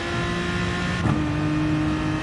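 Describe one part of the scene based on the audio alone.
A racing car engine shifts up a gear with a brief break in its drone.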